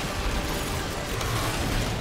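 A heavy weapon fires with a loud blast.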